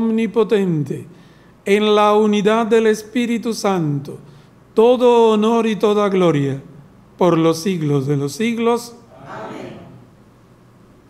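A man chants in a sung voice through a microphone, in a room with some echo.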